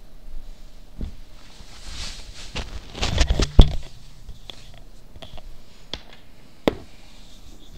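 Bumps and rustles sound close to a microphone.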